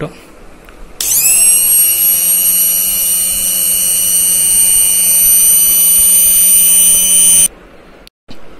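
A hand blender motor whirs with a steady high whine.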